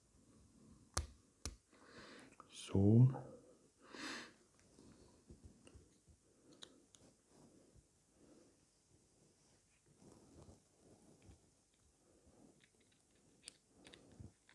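Small metal parts click and tap together.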